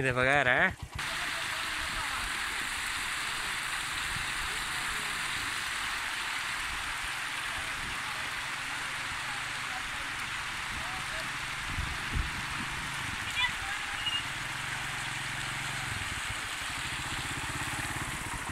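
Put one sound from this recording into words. Water rushes steadily over a low weir.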